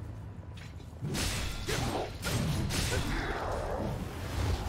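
Blows strike an enemy with thuds and slashes.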